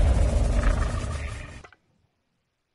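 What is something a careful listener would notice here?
A deep rumbling boom rings out and fades.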